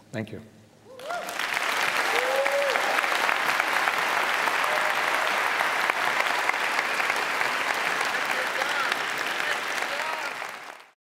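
A large audience applauds loudly.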